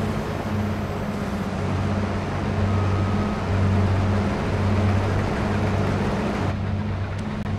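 A harvester's cutting gear whirs and hisses, then turns muffled and quieter.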